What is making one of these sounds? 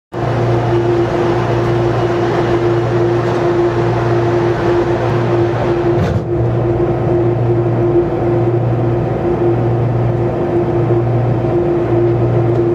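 A train's motors hum steadily as the train rolls slowly along.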